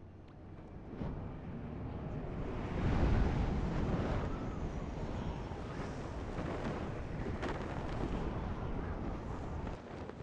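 Air rushes past in a steady whoosh that swells and then eases.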